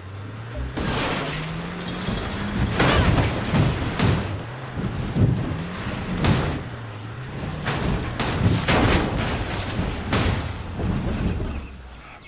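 Metal crashes and bangs as a car slams into a wrecked vehicle.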